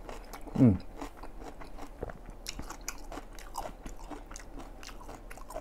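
A man chews food noisily and smacks his lips close to a microphone.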